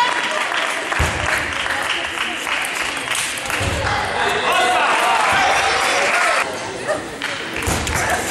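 A table tennis ball clicks back and forth off paddles and the table in a large echoing hall.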